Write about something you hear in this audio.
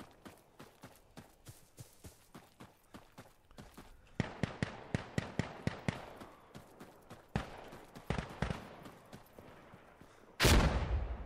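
Footsteps run quickly and steadily, crunching on grass and then thudding on stone.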